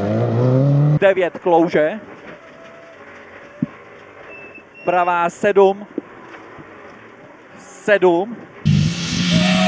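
An engine revs in short bursts inside a rally car.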